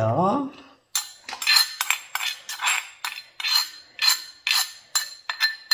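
A spoon scrapes and taps against a small bowl.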